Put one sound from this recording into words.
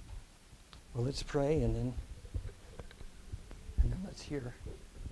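A middle-aged man speaks slowly through a microphone.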